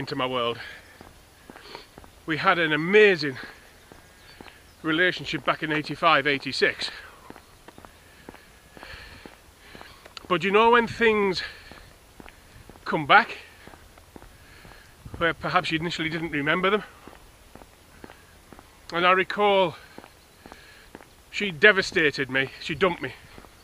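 A middle-aged man talks close to the microphone in short bursts.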